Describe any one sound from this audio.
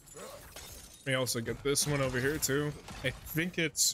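Rocks crash and tumble.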